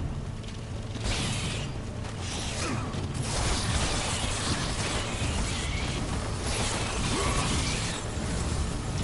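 Blades slash and strike with sharp metallic hits and crunching impacts.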